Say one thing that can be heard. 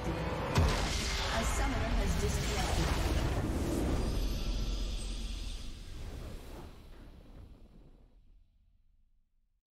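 A triumphant fanfare swells and then slowly fades away.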